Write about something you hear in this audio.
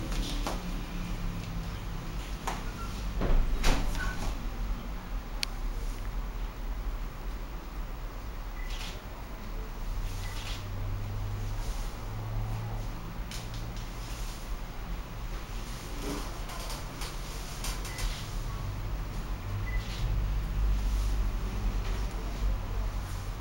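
A barber shuffles about on a hard floor.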